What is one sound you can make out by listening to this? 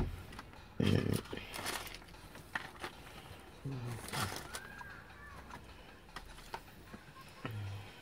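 Paper crinkles as food is picked from a bowl.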